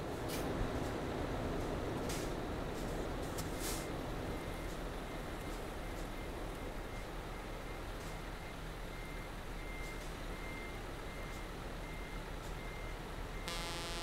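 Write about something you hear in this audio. A heavy truck engine idles with a low, steady rumble.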